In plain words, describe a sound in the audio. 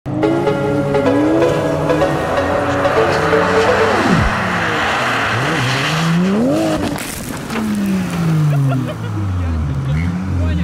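A car engine revs hard, rising and falling as the car slides.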